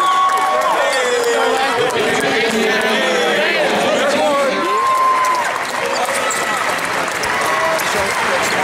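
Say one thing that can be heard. Young men cheer and shout excitedly in a large echoing arena.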